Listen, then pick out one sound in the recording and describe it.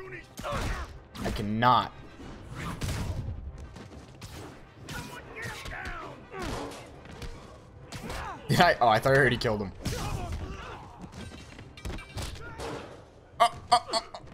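Punches and blows land with sharp thuds.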